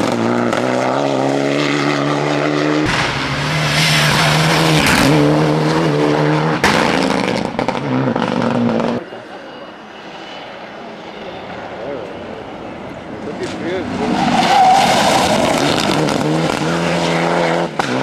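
Gravel sprays and crunches under a car's tyres.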